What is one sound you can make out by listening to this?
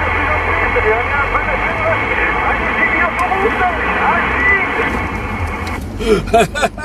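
A CB radio hisses with AM static while receiving.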